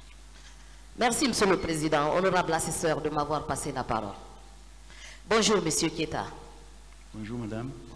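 A man speaks through a microphone in a large room, with pauses between phrases.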